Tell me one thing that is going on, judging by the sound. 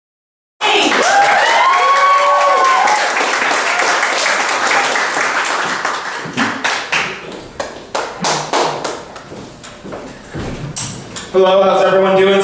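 An audience claps and cheers in a room.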